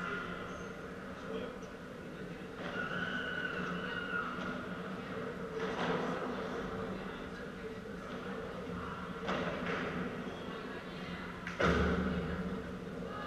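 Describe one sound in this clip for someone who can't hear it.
Men talk quietly at a distance in a large echoing hall.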